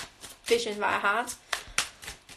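A young woman speaks briefly and animatedly close by.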